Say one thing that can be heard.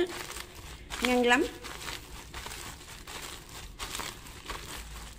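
A plastic bag crinkles and rustles up close.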